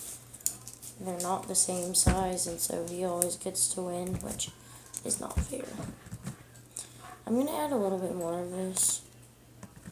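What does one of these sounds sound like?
A young girl sings close by.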